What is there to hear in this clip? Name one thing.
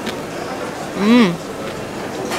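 A young woman hums with pleasure close by.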